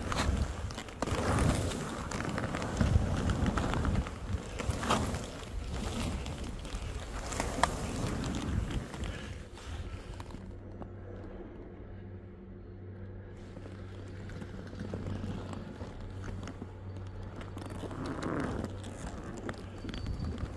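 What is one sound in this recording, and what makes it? Skis hiss and scrape over soft snow.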